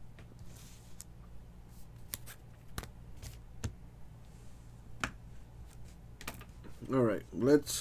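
Trading cards tap and rustle softly as they are handled.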